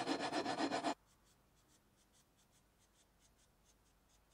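A marker squeaks faintly in short strokes.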